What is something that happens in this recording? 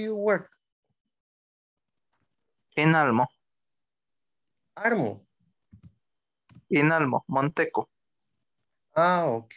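A woman speaks in short bursts with pauses, heard through an online call.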